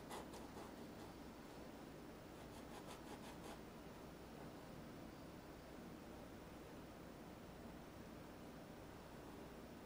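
A brush strokes softly across a canvas.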